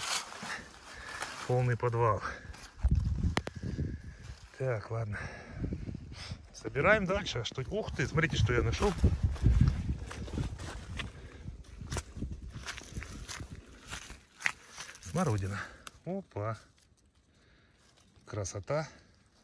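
Leaves rustle as a hand handles a plant.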